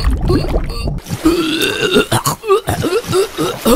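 Water ripples and laps gently.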